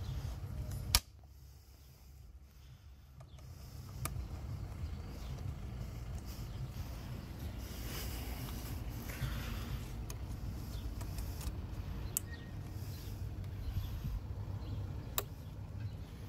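A plastic electrical connector clicks into place.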